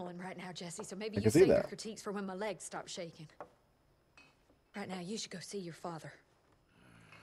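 A young woman speaks tensely and quickly.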